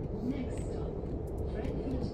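A train rumbles steadily while riding along.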